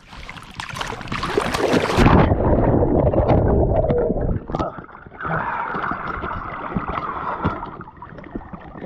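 Water splashes and gurgles close up.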